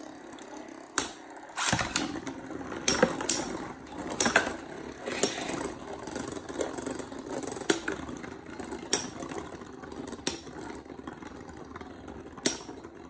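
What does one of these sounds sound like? Two spinning tops clash with sharp clicks.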